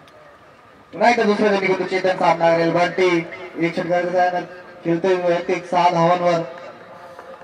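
Young men shout loudly across an open field.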